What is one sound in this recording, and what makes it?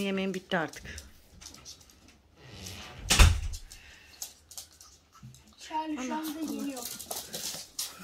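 Small dogs scamper, their claws tapping on a hard floor.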